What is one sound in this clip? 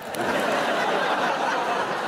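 A woman laughs loudly.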